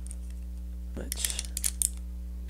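A wrench ratchets as a nut is tightened.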